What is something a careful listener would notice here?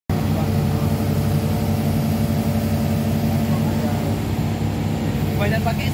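An excavator's diesel engine rumbles steadily nearby.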